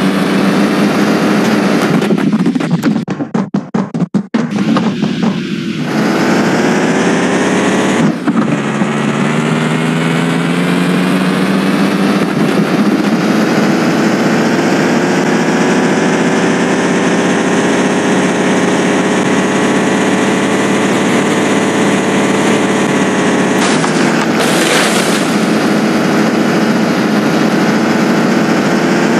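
A food truck's engine hums as it drives.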